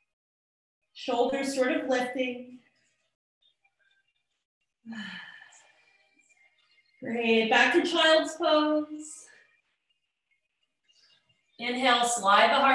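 A woman speaks calmly in short phrases, heard through an online call.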